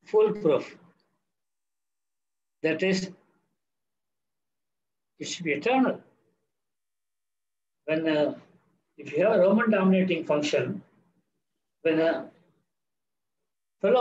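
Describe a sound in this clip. An elderly man speaks calmly over an online call, in short phrases with pauses.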